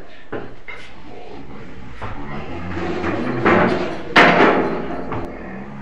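A young man groans and mumbles close by.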